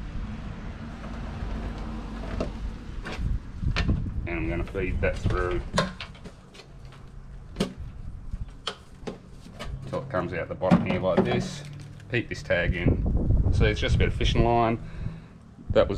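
A plastic bottle clunks and rattles as it is handled.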